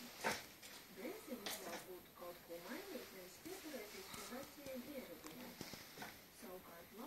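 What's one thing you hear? A dog whines softly up close.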